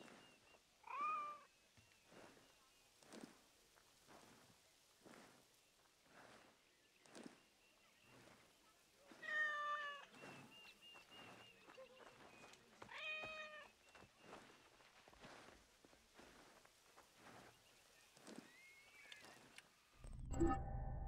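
Footsteps crunch steadily on sand.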